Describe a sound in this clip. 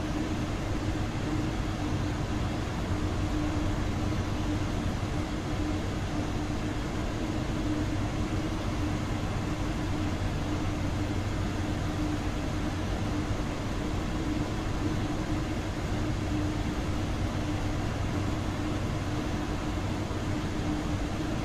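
A low steady hum drones inside a train carriage.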